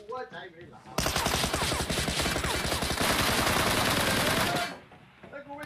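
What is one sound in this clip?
Gunfire rattles rapidly in a game.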